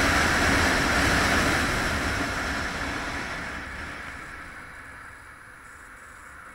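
Wind rushes loudly past a moving motorcycle, then dies away as it slows.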